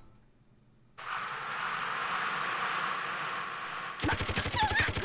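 A minigun whirs as its barrels spin up.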